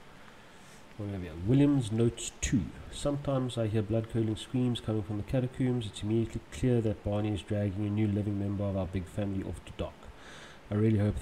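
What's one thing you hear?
A man speaks close to a microphone, calmly, as if reading aloud.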